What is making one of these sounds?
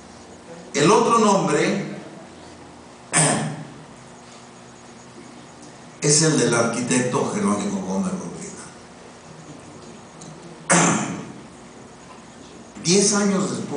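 An elderly man speaks slowly into a microphone in an echoing hall, with pauses between phrases.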